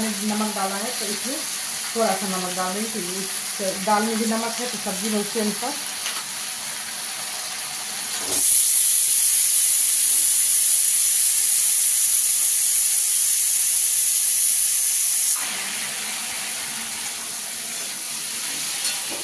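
Vegetables sizzle in a hot pan.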